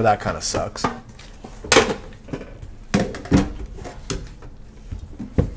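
Hands handle cardboard boxes, which knock and slide against each other.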